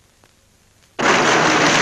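A tank engine roars loudly nearby.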